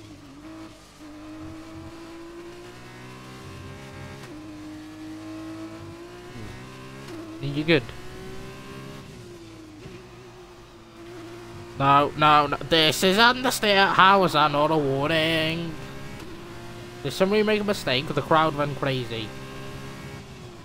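A racing car engine whines steadily, rising and falling in pitch as it shifts gears.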